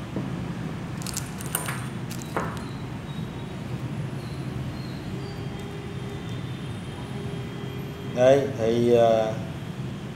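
Metal parts knock and clink lightly as they are handled.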